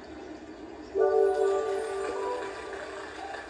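A video game plays a short chiming jingle.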